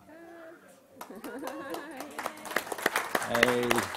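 A group of people clap loudly.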